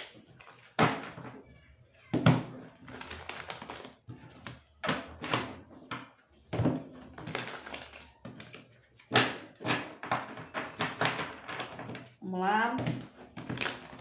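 Cards shuffle and riffle between a young woman's hands.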